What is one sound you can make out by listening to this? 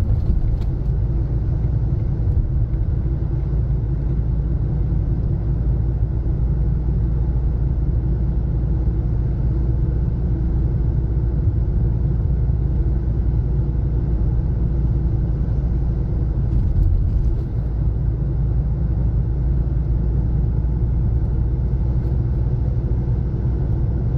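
Tyres roll on asphalt with a low rumble.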